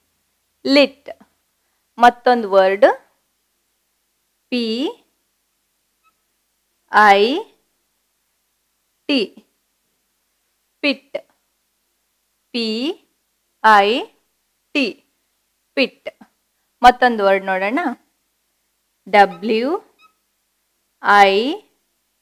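A young woman speaks clearly and slowly, in short separate words, close to a microphone.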